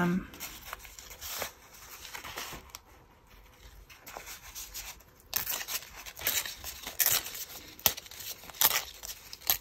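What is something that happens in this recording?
Paper rustles and crinkles as hands fold and handle it.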